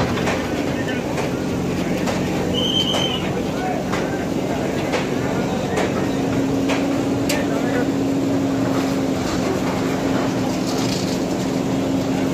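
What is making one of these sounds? A backhoe engine rumbles steadily close by.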